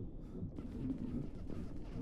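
Guns fire in short bursts.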